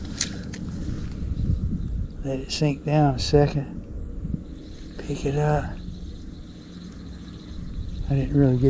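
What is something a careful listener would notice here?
A fishing reel whirs softly as its handle is cranked.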